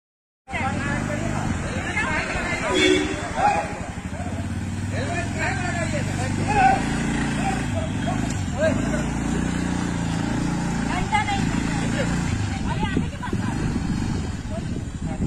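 A scooter engine idles.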